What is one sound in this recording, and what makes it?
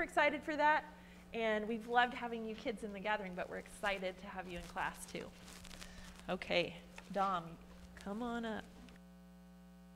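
A woman speaks calmly into a microphone, heard through loudspeakers in a large room.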